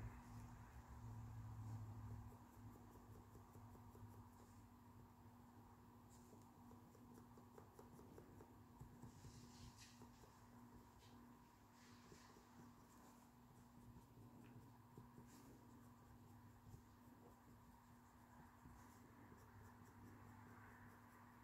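A small paintbrush dabs and strokes softly close by.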